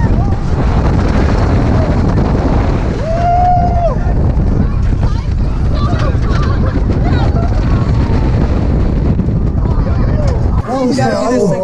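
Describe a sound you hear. A roller coaster rattles and rumbles along its track.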